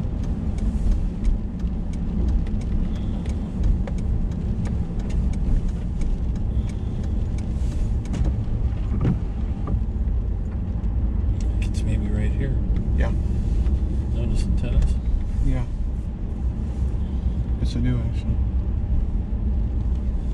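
Raindrops tap on the windscreen.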